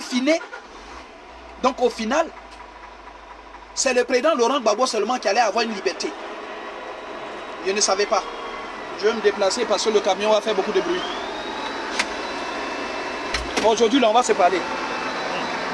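A man speaks close to a phone microphone, in short bursts.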